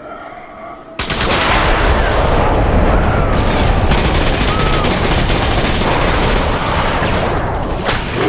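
Two pistols fire in rapid, loud bursts.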